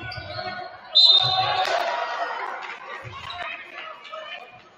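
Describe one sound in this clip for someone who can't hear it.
A crowd cheers in an echoing gym.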